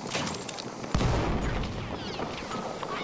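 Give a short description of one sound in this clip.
A loud explosion booms nearby.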